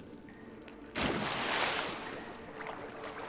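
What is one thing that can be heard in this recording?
Water splashes loudly as someone jumps in.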